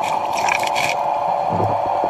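Bubbles rush and gurgle underwater close by.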